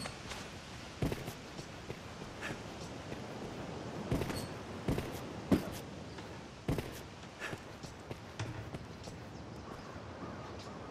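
Footsteps thud on stone.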